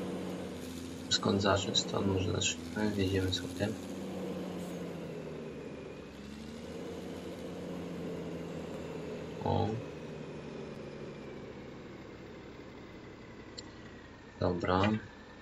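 A tractor engine hums steadily as the tractor drives.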